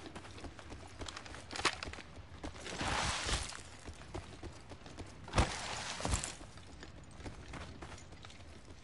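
Footsteps patter quickly over hard ground.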